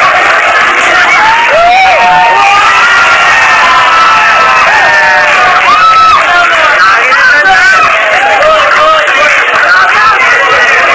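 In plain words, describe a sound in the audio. A large crowd cheers and shouts loudly throughout.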